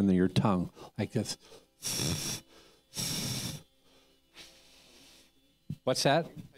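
An elderly man speaks expressively into a microphone, with pauses between phrases.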